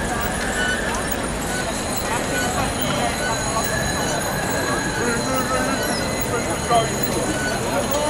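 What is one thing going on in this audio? Many people chatter and call out nearby.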